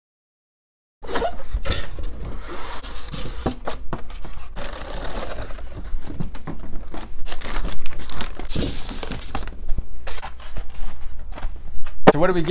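Cardboard scrapes and thumps as a box is handled and opened.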